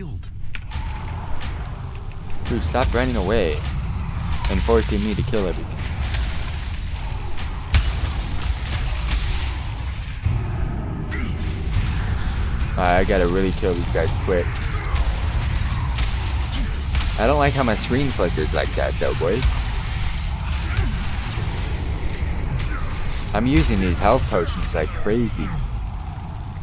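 Magic spells whoosh and crackle in combat.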